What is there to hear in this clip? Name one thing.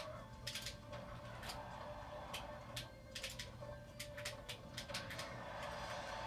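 Sharp video game hit sounds crack and smack through a television speaker.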